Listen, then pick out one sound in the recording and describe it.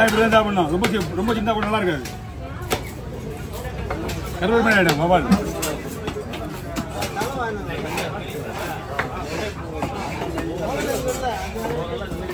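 A heavy knife chops through fish on a wooden block with sharp, repeated thuds.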